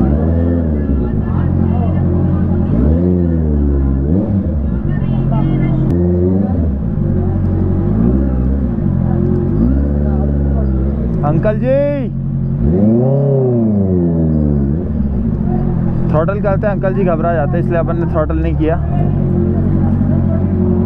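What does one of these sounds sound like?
A motorcycle engine rumbles and revs at low speed throughout.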